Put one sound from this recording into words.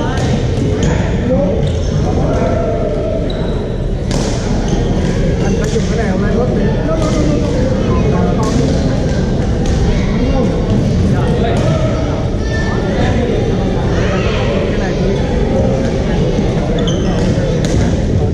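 Many people talk and call out in a large echoing hall.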